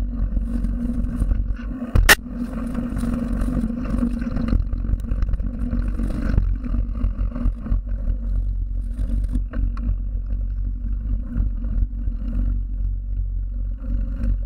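Bicycle tyres roll and crunch over gravel and dirt.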